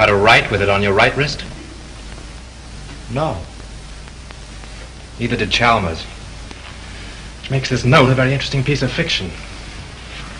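A second man answers in a raised, urgent voice.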